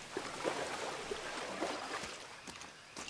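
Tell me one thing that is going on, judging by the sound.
A waterfall splashes steadily nearby.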